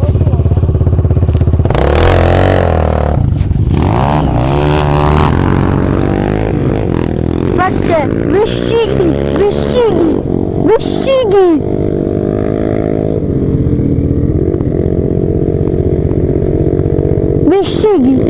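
A motorcycle engine runs close by, idling and revving up and down.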